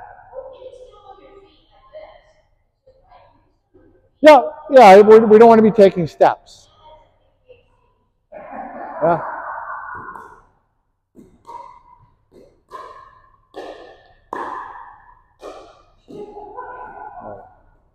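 Paddles pop as they hit a plastic ball back and forth.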